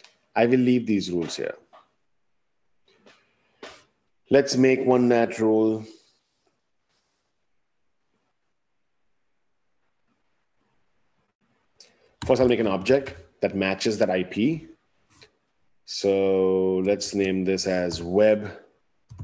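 A man speaks calmly and close to a microphone, pausing between phrases.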